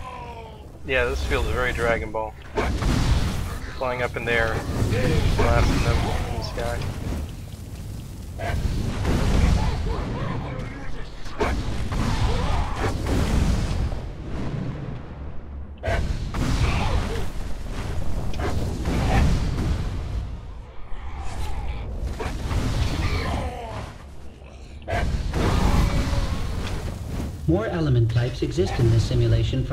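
Fire blasts roar and explode in loud bursts.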